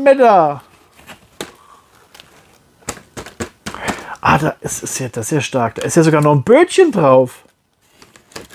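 Cardboard packaging rustles and crinkles as a box is opened.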